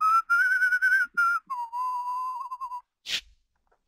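A man whistles a loud, wavering tune nearby.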